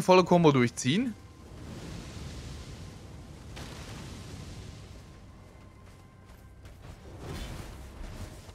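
Armoured footsteps swish through grass.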